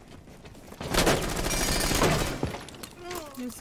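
Rapid gunfire bursts close by.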